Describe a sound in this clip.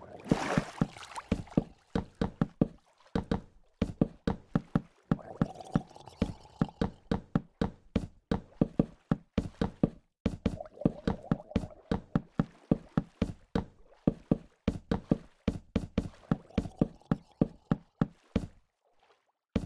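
Water splashes softly with swimming strokes.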